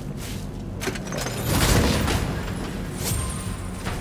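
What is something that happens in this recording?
A heavy chest creaks and bursts open.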